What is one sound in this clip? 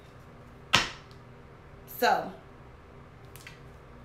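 A card taps down on a table.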